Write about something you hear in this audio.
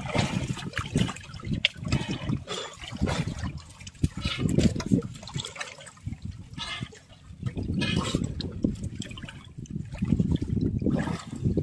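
Water splashes as a fishing net is hauled out of the sea.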